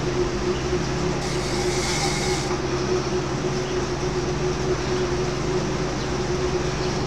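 A bicycle on an indoor trainer whirs steadily close by.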